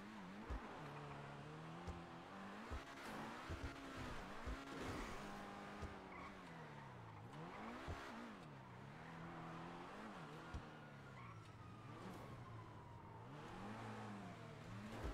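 A sports car engine revs up and down as the car speeds along.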